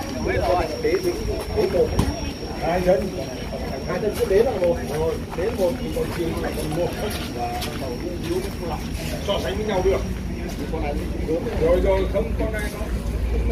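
Men talk with animation close by, outdoors.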